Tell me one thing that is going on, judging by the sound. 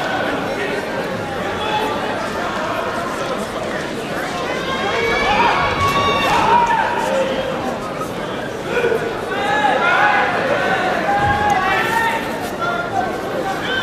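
A crowd murmurs and chatters throughout a large echoing hall.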